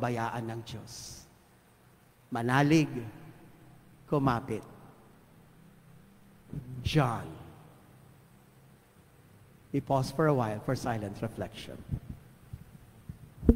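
A man speaks into a microphone in bursts, with long pauses, in a reverberant hall.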